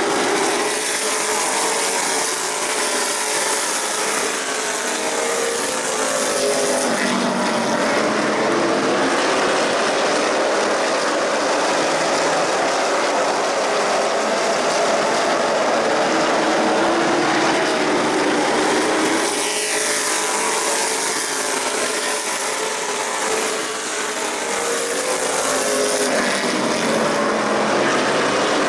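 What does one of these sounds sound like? Race car engines roar loudly as cars speed past on a track.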